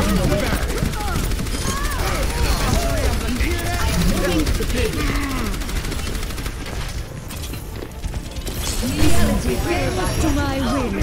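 A weapon fires rapid bursts of shots with loud impacts.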